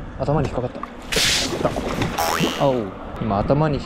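A fish splashes loudly at the surface of the water.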